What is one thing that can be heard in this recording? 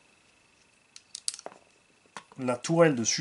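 Plastic parts click and knock together in handling.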